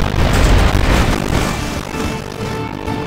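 Cannon fire booms and explosions burst loudly.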